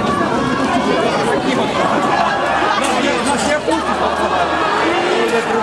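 A crowd of people talks at once.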